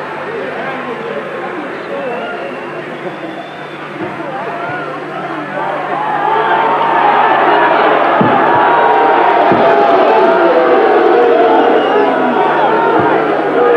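A large crowd cheers and shouts, growing louder.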